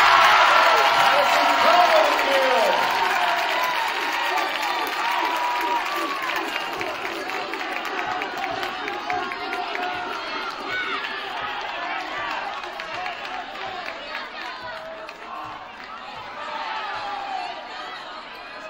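A crowd cheers and chatters in a large echoing gym, slowly quieting down.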